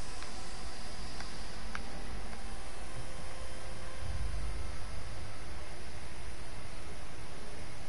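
Footsteps shuffle softly across a hard floor.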